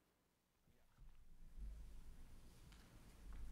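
A woman reads out calmly through a microphone.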